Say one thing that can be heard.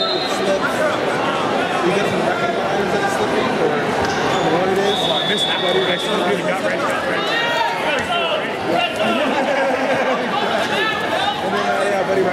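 A large crowd chatters and shouts throughout a big echoing hall.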